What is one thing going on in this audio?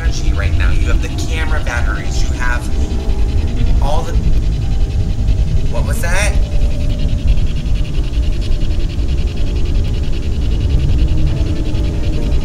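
A two-way radio hisses with steady static.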